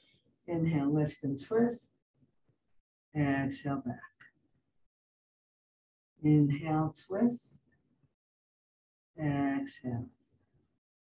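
An older woman speaks calmly in short phrases through a microphone, as if on an online call.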